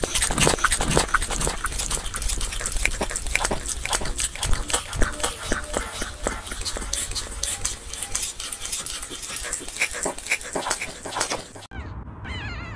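A puppy chews and smacks on food up close.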